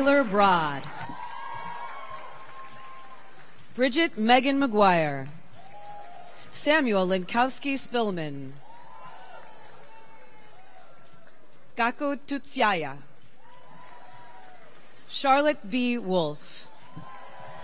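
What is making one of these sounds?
A woman reads out names through a loudspeaker in a large echoing hall.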